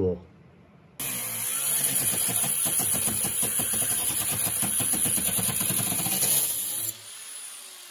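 An angle grinder whines loudly as it grinds metal.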